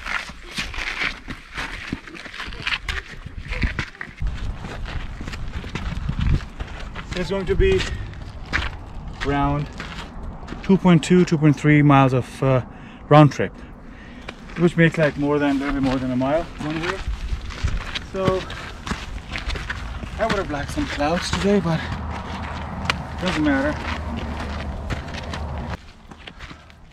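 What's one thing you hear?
Footsteps crunch on gravel and rock.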